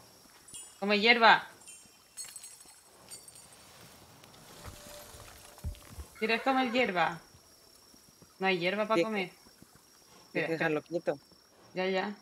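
A young woman talks with animation into a microphone, in short bursts.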